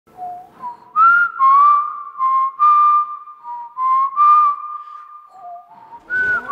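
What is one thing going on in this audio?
A man whistles a slow tune close by.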